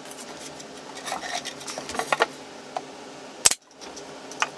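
Wooden boards knock and tap against each other.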